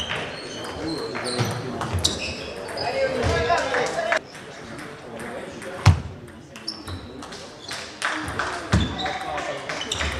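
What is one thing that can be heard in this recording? Voices murmur around a large echoing hall.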